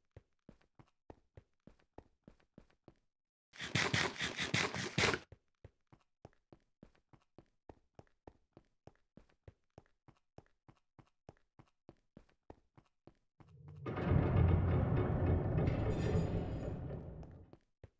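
Footsteps tap quickly and steadily on hard ground.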